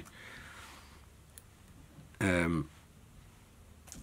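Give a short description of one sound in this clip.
Small scissors snip a thread.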